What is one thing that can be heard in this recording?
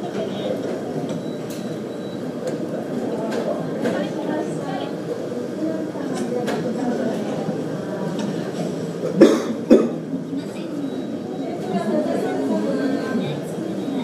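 A train rumbles along the tracks in the distance.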